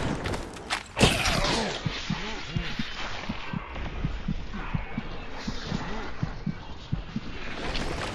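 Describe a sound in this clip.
A blade slashes and swishes through the air.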